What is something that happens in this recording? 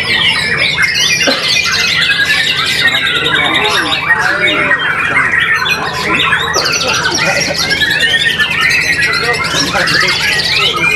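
A caged songbird sings loud, varied whistling phrases.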